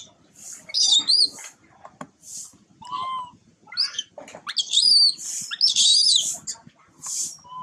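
A baby monkey squeaks and chirps in high, shrill bursts close by.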